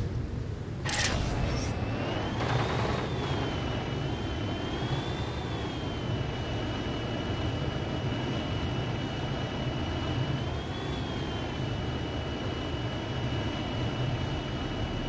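A flying machine's engine hums steadily with a whining tone.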